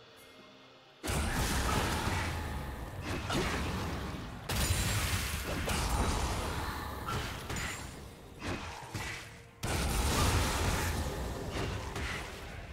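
Game spells blast and crackle in a fast, noisy fight.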